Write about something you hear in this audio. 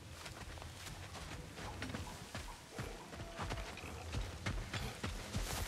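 Heavy footsteps crunch on dirt and grass at a steady walking pace.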